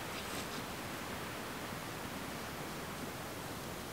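A wooden drill grinds and squeaks against a board.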